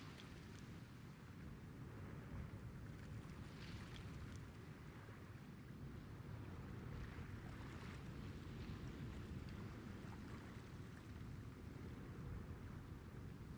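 Water laps gently against a ship's hull.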